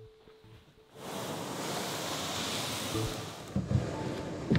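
A canoe hull scrapes across sand.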